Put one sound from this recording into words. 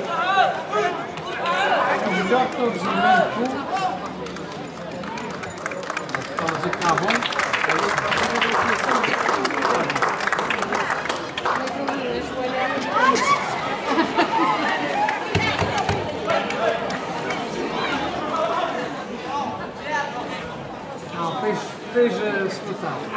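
A crowd of onlookers shouts and cheers outdoors.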